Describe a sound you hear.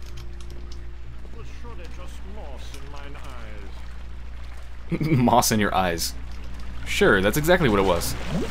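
Water trickles steadily in a stream.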